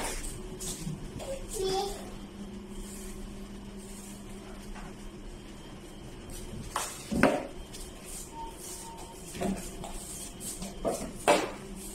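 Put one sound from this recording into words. A broom brushes across a wooden floor.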